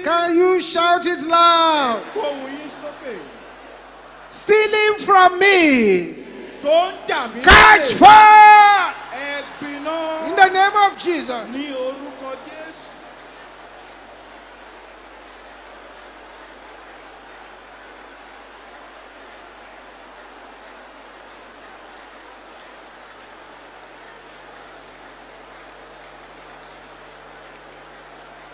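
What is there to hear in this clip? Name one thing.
A large crowd prays aloud together in an echoing hall.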